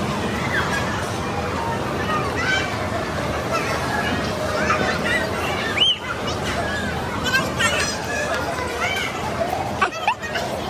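Young children shriek and chatter playfully nearby.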